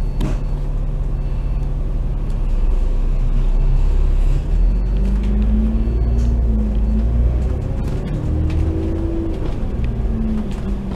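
City traffic hums all around.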